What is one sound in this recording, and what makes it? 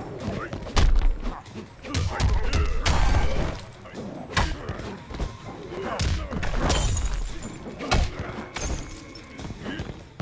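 Heavy punches and kicks land with loud thuds.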